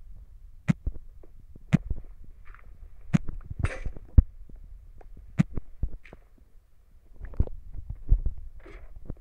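Stone crunches repeatedly as blocks are dug out, with short, sharp knocks.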